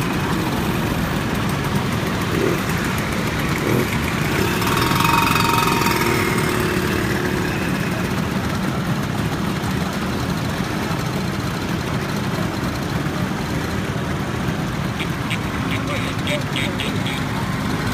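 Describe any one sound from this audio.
Scooter engines rev as riders pull away one after another.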